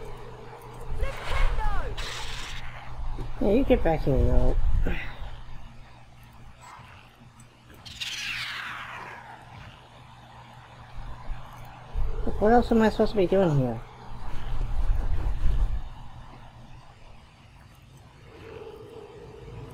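A magic spell crackles and fizzes in short bursts.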